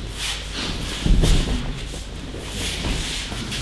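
Bodies thud onto a padded mat in a large echoing hall.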